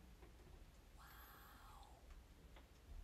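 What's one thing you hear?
A young woman gasps loudly close by.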